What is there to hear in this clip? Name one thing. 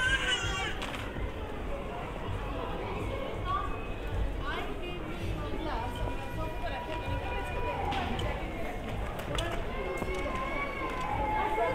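A crowd of people chatter and talk nearby outdoors.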